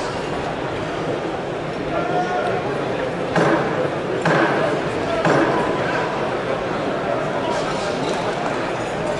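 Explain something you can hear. A large indoor crowd murmurs and chatters steadily, echoing in a big hall.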